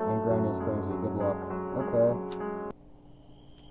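Melodic game music plays briefly, then cuts off.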